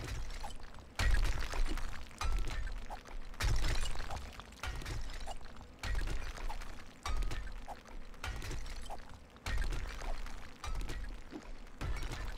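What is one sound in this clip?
A pickaxe strikes rock again and again with dull thuds.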